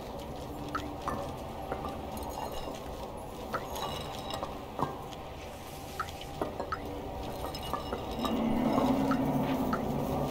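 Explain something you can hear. Small paws patter softly on hard ground.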